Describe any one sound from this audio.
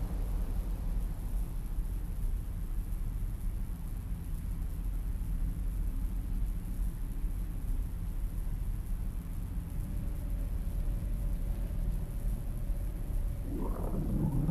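Wind blows with a low, steady rumble outdoors.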